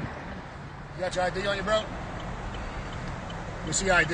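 A man speaks firmly just outside a car window.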